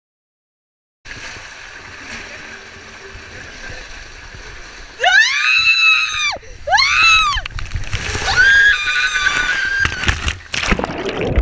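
Water rushes and gushes through a tube slide.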